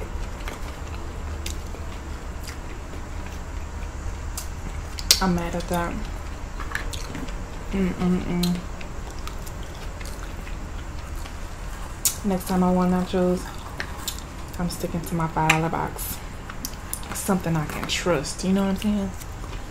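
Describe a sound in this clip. A young woman chews food with wet smacking sounds.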